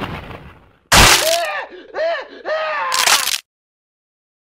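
A young man yells in alarm.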